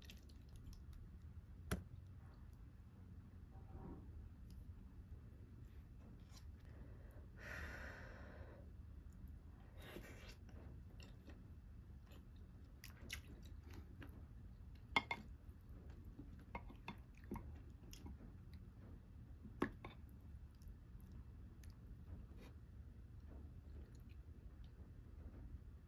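Chopsticks and a spoon clink and tap against a ceramic bowl.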